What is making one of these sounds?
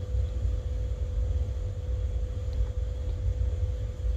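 A spatula scrapes and stirs a thick sauce in a pan.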